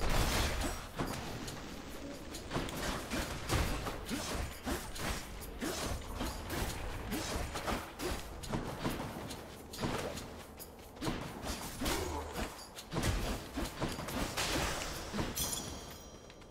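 Game combat sounds of slashes and magical bursts play rapidly.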